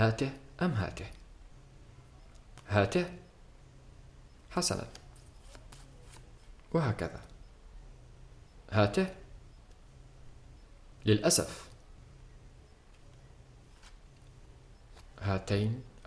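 Playing cards rustle softly as they are handled and flipped over.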